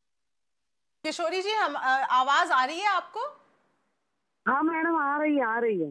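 A woman speaks over a phone line.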